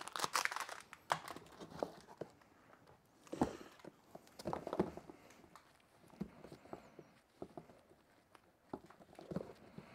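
Cables rattle and clatter against foam.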